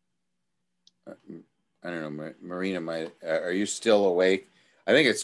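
A man speaks with animation over an online call.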